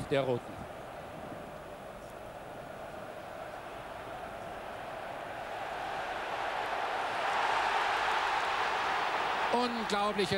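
A large stadium crowd roars, swelling louder as the play builds.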